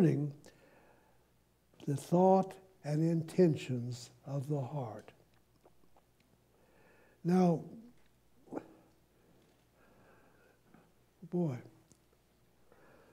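An elderly man speaks slowly and with emotion through a microphone, in bursts with long pauses.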